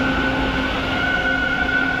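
A subway train pulls away from the platform.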